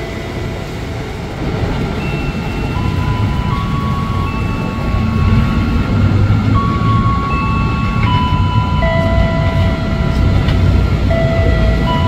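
A train rolls in slowly and rumbles toward the platform.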